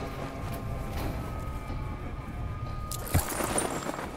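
Wind rushes loudly past a fluttering parachute.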